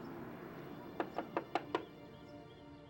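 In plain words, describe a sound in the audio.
A hand knocks several times on a wooden door.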